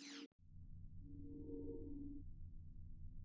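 A soft electronic chime hums briefly.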